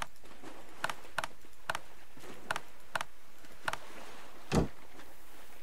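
Soft clicks sound as items are moved around an inventory.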